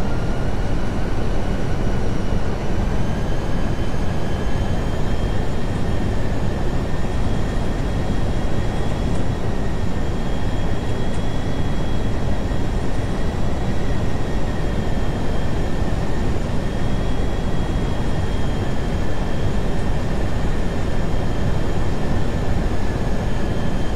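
Jet engines roar steadily with a loud rushing of air.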